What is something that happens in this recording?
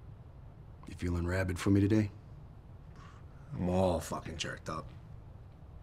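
A middle-aged man speaks calmly and quietly nearby.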